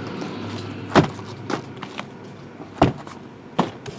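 Boxes are set down on a table with dull knocks.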